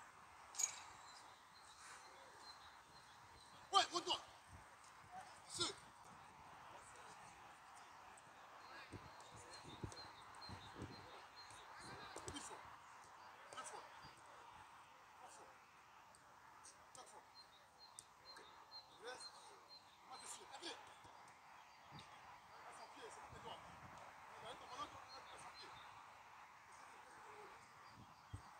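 A football is kicked with dull thuds outdoors.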